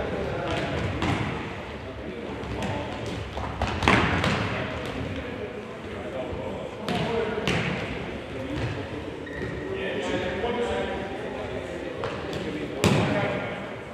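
A ball is kicked with sharp thuds that echo around a large hall.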